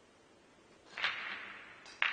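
A cue strikes a billiard ball sharply.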